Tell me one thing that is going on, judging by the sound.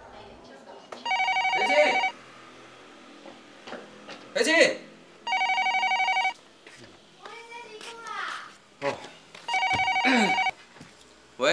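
A telephone rings loudly.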